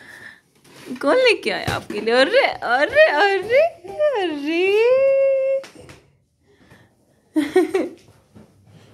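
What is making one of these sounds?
A small child sings and babbles loudly close by.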